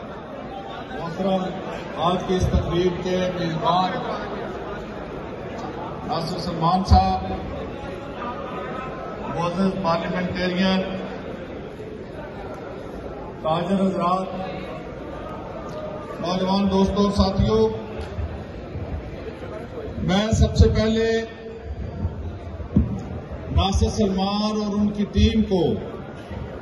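An elderly man speaks forcefully into a microphone through loudspeakers in a large echoing hall.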